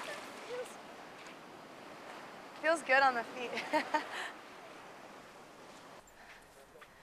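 Waves wash gently against a rocky shore.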